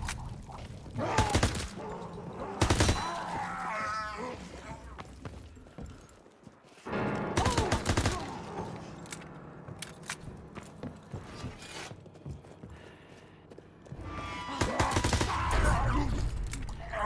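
A gun fires sharp shots in short bursts.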